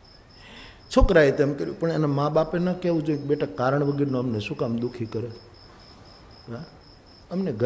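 An elderly man speaks expressively into a microphone, his voice carried over a loudspeaker.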